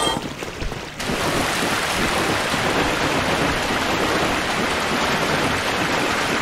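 Footsteps splash steadily through shallow water.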